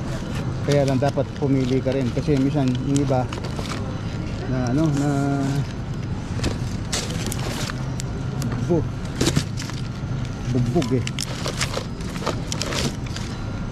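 Pineapple leaves rustle and the fruit thumps against a cardboard box.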